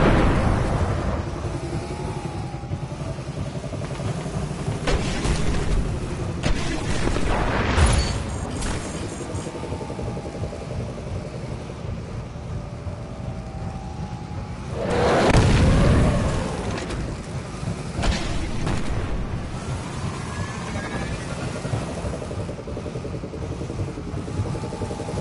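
A hovering vehicle's engine hums and whines steadily.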